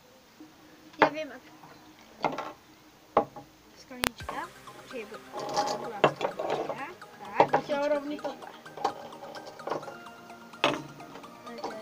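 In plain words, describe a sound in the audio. A glass cup knocks on a wooden table.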